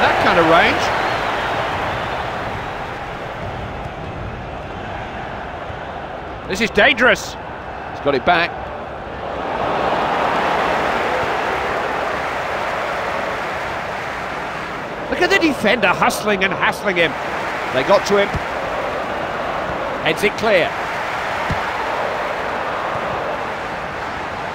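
A large stadium crowd roars steadily, swelling and easing.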